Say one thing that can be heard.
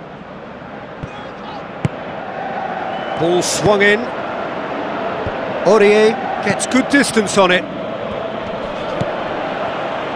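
A stadium crowd murmurs and roars.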